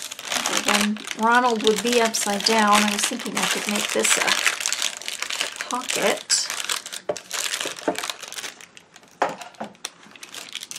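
Paper crinkles and rustles as hands fold it.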